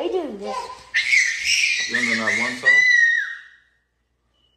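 A toddler squeals loudly.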